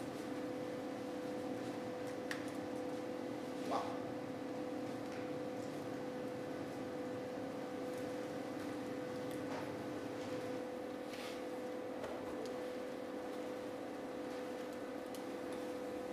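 A man chants in a steady drone in a large echoing hall.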